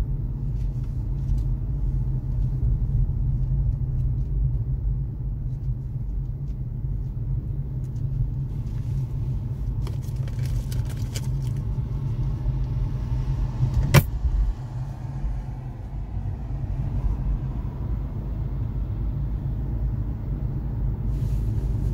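A car's road noise rumbles low and steady, heard from inside.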